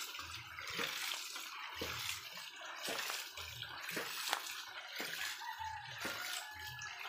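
A pump valve thumps in a steady, regular beat.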